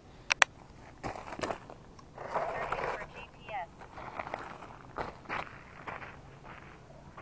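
Footsteps crunch on loose gravel close by.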